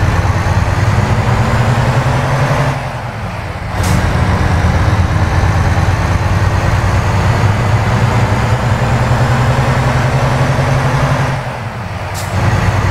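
A truck engine drones steadily, dipping briefly twice as gears shift.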